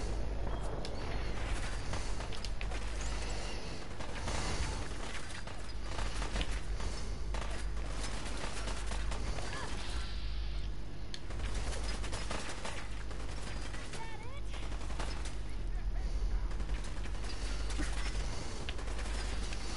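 A laser rifle fires in sharp zapping bursts.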